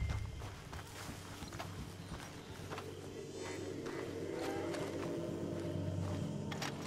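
Footsteps tread slowly over grass and dirt.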